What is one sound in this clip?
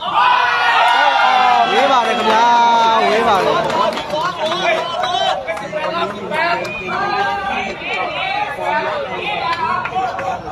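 A large outdoor crowd of young people shouts and cheers loudly.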